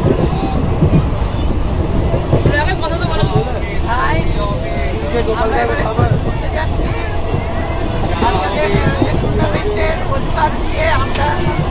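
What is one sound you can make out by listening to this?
Young women talk with animation close by.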